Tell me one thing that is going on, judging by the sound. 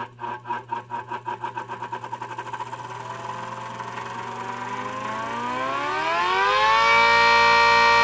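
An electric mechanical siren winds up, rising in pitch from a pulsing growl.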